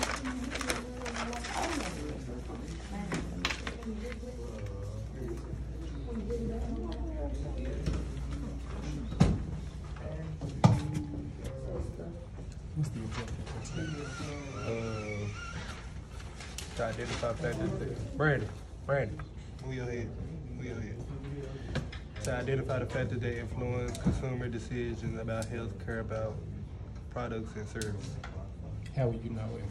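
Several teenagers chatter around the room.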